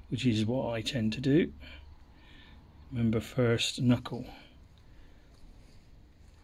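Fingers press seeds softly into loose soil.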